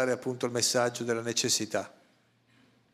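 A middle-aged man speaks with animation into a microphone, close up.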